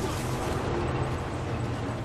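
Footsteps hurry over gravel.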